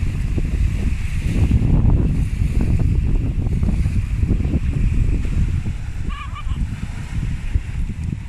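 Wind blusters into the microphone outdoors.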